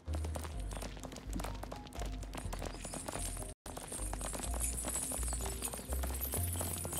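Heavy metal chains clink and drag along the ground.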